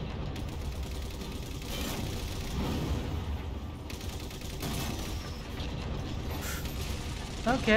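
A heavy cannon fires with loud booms.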